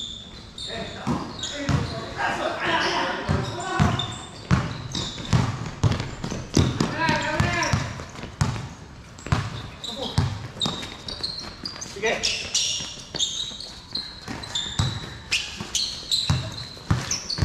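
A basketball bounces on a hard court, echoing under a large roof.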